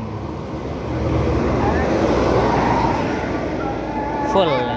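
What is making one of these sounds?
A bus engine roars as the bus passes close by.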